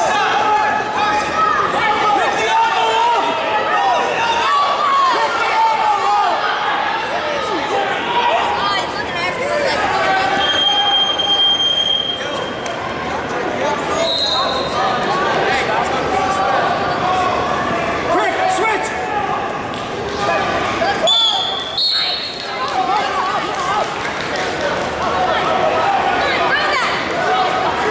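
A woman close by cheers and shouts encouragement.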